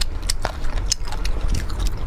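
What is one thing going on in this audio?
Crispy fried chicken crackles as a hand picks it up.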